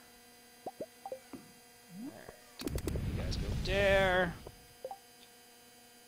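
Soft game menu blips and pops sound in quick succession.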